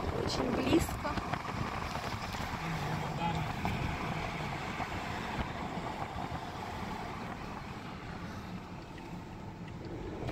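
Tyres roll on pavement.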